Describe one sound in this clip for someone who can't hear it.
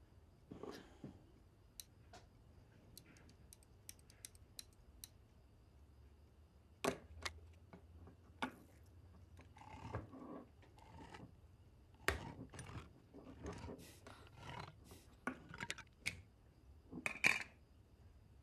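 Metal cans clink and knock on a hard countertop.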